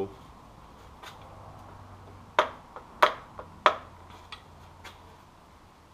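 Metal tools click and knock against an engine.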